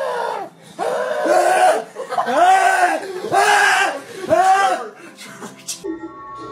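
A young man screams in terror, close by.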